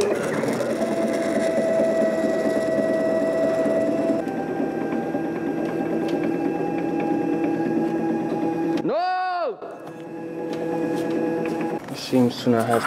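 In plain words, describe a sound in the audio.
A machine motor whines steadily, then shifts in pitch.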